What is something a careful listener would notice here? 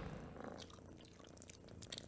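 A cat hisses.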